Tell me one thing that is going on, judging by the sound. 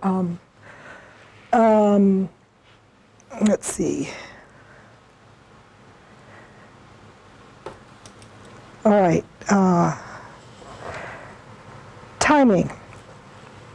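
A middle-aged woman speaks with animation in short bursts.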